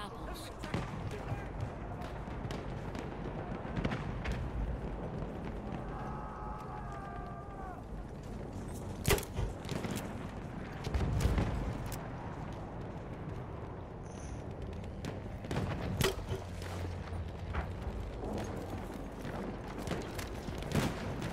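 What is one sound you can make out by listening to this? Gunshots crack repeatedly from near and far.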